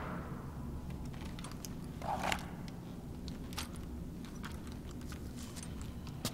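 A soldier's gear clicks and rattles softly as he moves.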